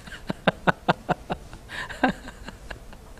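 A middle-aged man laughs heartily into a clip-on microphone.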